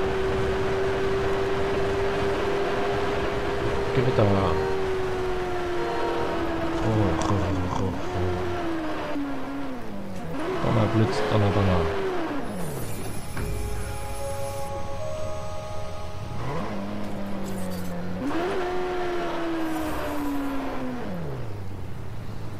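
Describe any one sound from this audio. A motorcycle engine roars, revving up and dropping in pitch as it shifts gears.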